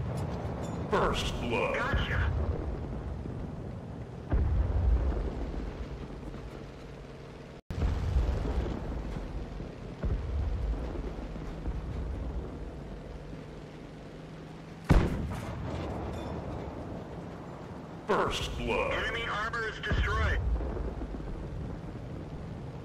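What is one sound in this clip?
A shell explodes against a tank.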